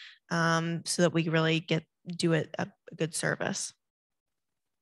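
An adult speaks with animation into a close microphone.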